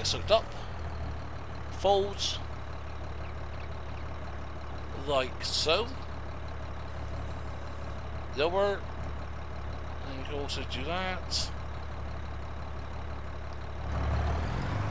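A tractor engine idles with a steady low rumble.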